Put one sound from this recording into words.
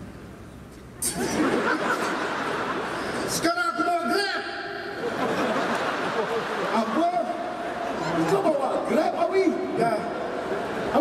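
A band plays with electric guitars and keyboards.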